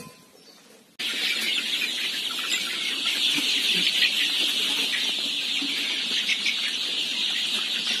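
Many chickens cheep and cluck together.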